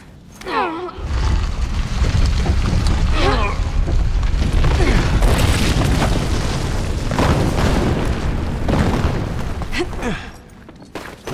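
A monster roars loudly and deeply.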